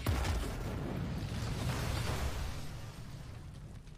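A large wreck rumbles deeply and fades.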